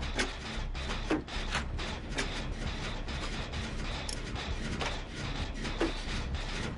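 A machine clanks and rattles as it is being repaired, with sharp metallic clicks now and then.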